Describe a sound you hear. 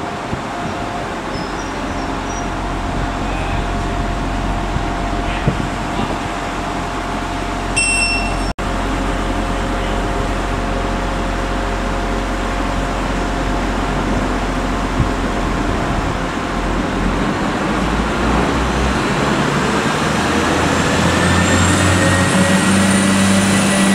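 A diesel train rumbles as it rolls slowly into the station.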